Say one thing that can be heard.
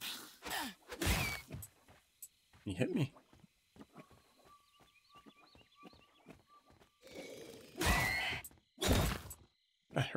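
Sharp hits and bursts of magic crackle as creatures fight.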